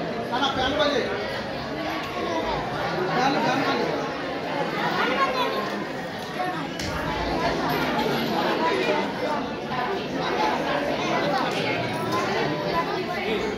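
A crowd of women and children chatter and talk over one another in an echoing room.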